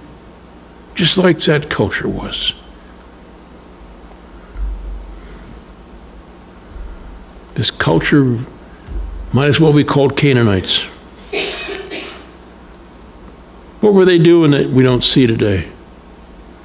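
An elderly man speaks calmly into a microphone, reading out with pauses.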